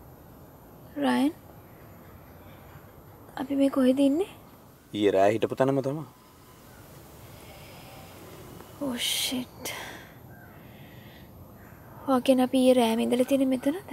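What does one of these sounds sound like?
A young woman speaks softly and with emotion.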